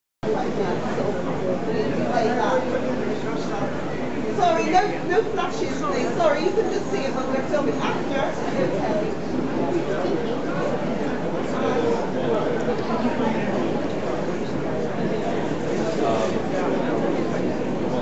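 An elderly man speaks to the crowd, raising his voice.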